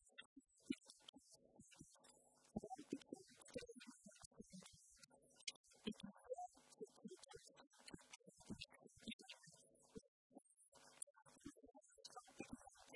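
A woman speaks with animation to an audience through a microphone.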